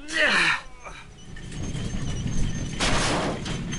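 A metal bar scrapes and clanks against a metal box.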